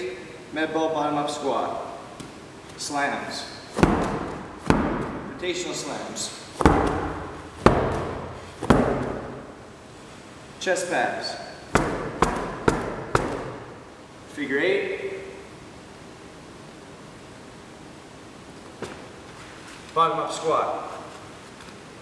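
A young man talks calmly to the listener, close by.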